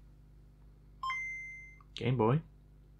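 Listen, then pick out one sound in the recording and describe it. A handheld game console plays a short, bright startup chime.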